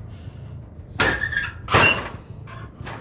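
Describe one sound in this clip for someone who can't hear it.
A metal locker door clanks open and shut.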